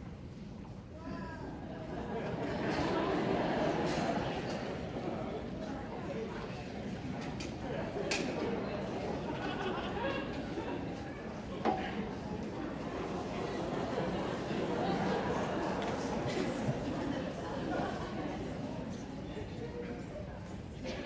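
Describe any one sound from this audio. A large mixed choir sings together in an echoing hall.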